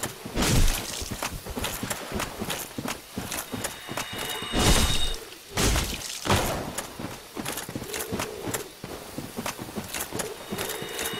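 Armoured footsteps clink and thud through rustling grass.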